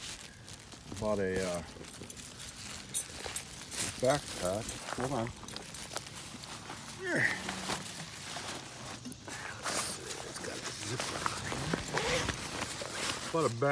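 A dog whines in short rising and falling cries.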